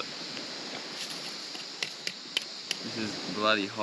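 Sticks click and tap against wood.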